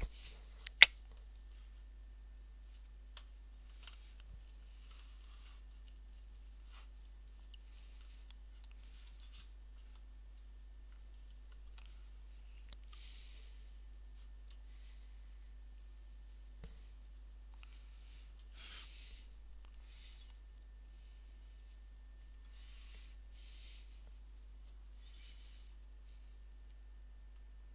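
Small plastic parts of a laptop click and scrape under gloved fingers.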